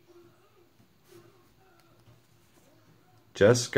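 Playing cards slide against each other as they are shuffled in hand.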